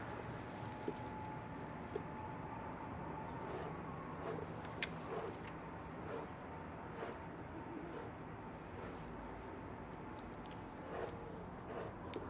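Paper pages rustle as a book is leafed through.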